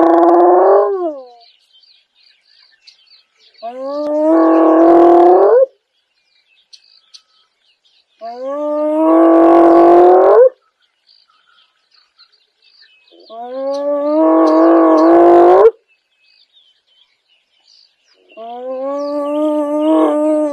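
A hyena gives loud, rising whooping calls, again and again.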